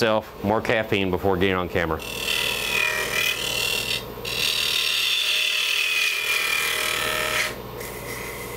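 A lathe hums steadily.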